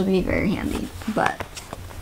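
A paper page flips.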